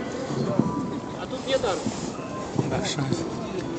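Footsteps scuff on pavement.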